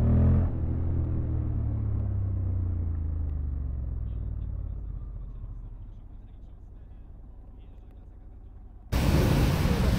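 A motorcycle engine idles and slowly fades as the bike rolls to a stop.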